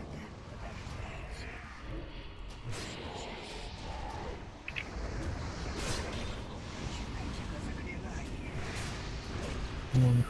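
Magic spells burst and whoosh in a video game battle.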